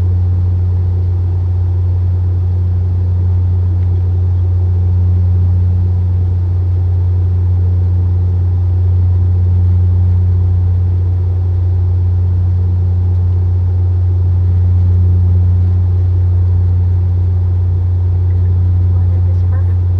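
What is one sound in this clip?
An airliner's engines drone in a steady low hum.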